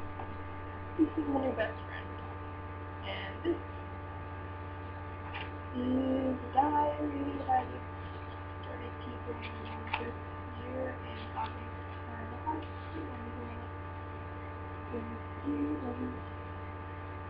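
A young woman speaks quietly and hesitantly, close to a laptop microphone.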